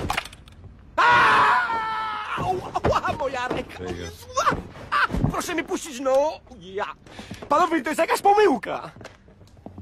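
A man shouts in panic, pleading.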